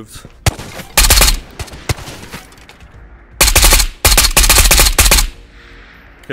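A gun fires in loud, rapid bursts.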